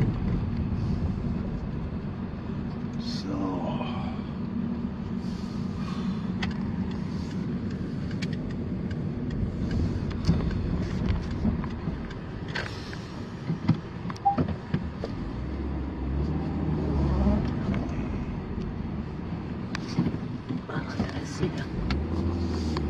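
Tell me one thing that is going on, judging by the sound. A car drives along a rough country road, heard from inside the cabin.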